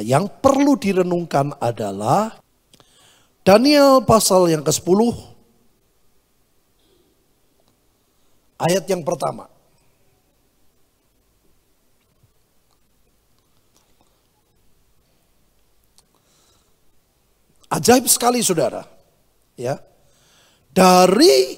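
A middle-aged man speaks slowly and with feeling into a microphone, with long pauses.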